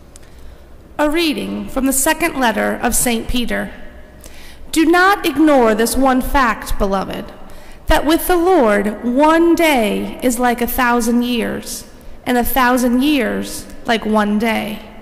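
A woman speaks clearly through a microphone.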